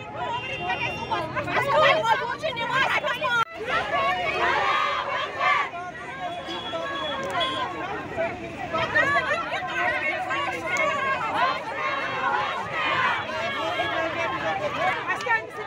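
A crowd of women shout and argue loudly and close by, outdoors.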